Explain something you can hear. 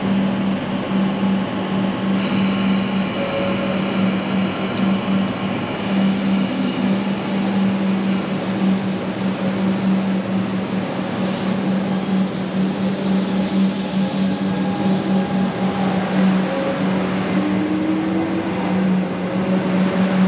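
An electric train hums steadily close by.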